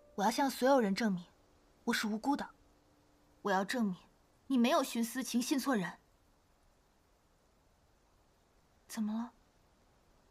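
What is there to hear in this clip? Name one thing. A young woman speaks nearby in a tense, emotional voice.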